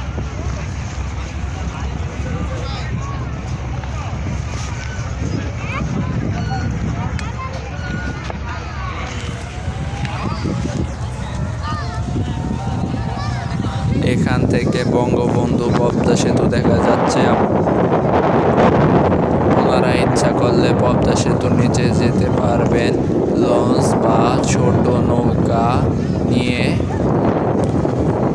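A crowd of men and women chatters in the distance.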